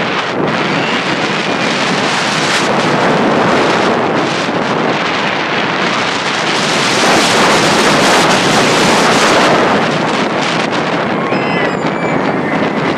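A roller coaster train rumbles and rattles on its track.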